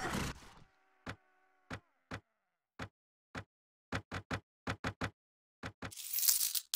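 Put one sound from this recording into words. Short clicks sound one after another.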